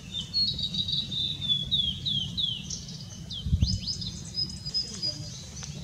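A blue-and-white flycatcher sings a series of clear, falling whistles.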